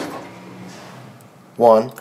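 A button clicks when pressed.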